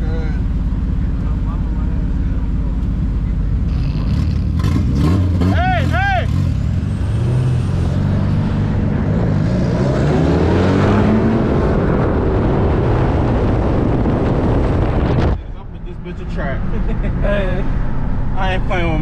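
A car engine rumbles loudly nearby.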